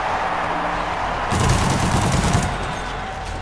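A laser weapon fires with a loud buzzing roar.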